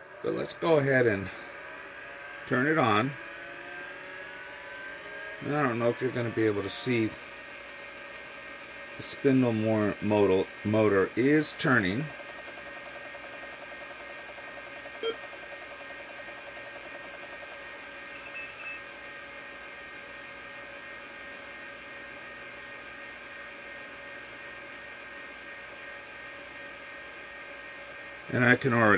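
A computer's drive and fan hum steadily.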